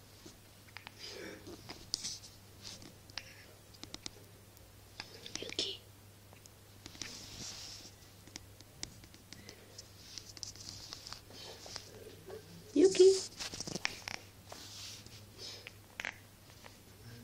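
A dog sniffs and snuffles close by.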